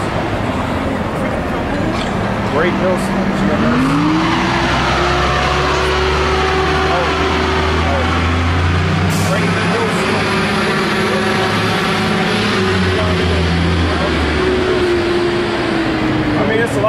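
Traffic hums along a city street outdoors.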